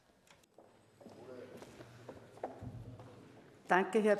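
A crowd murmurs quietly in a large hall.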